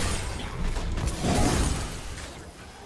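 A fiery explosion booms.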